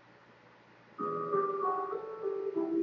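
Eerie game music plays.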